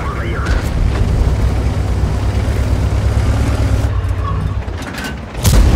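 A heavy tank's engine rumbles low.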